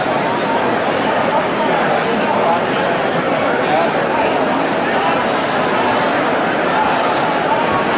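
Men shout encouragement nearby.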